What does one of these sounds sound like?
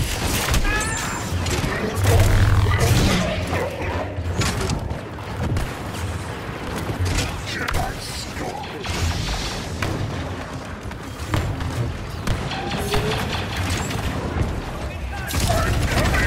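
Lightsabers clash with crackling bursts.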